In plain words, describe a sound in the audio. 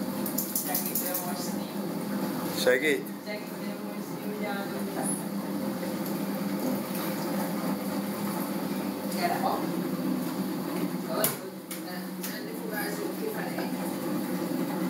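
A spin dryer hums steadily as it runs.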